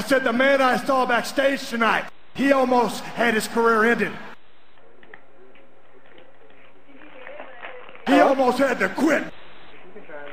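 A man speaks loudly and forcefully, close to a microphone.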